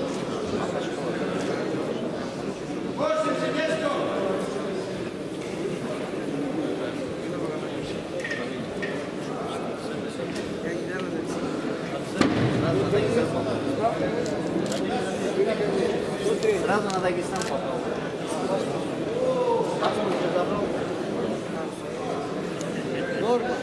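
A crowd of men chatters in a large echoing hall.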